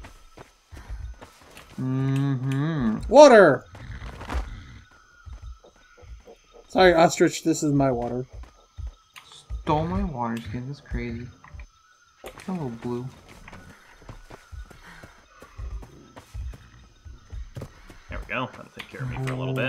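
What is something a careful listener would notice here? Footsteps thud softly through grass.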